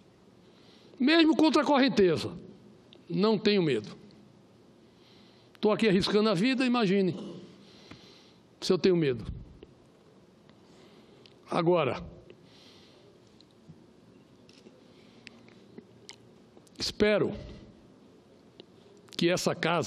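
A middle-aged man speaks slowly and deliberately into a microphone, with long pauses.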